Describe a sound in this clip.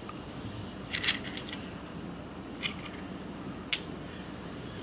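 Metal parts click and clink together in a man's hands.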